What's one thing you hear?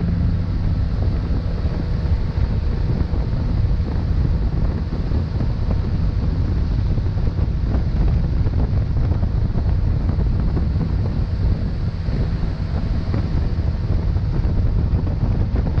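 Water churns and rushes in a boat's wake.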